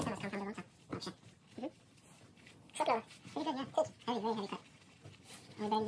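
A cloth rubs and squeaks over a smooth surface.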